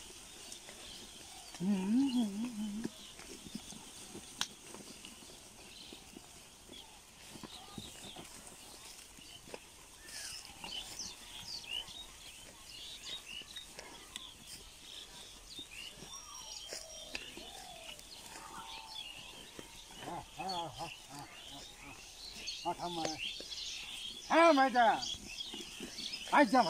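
Hooves tread and rustle over dry straw.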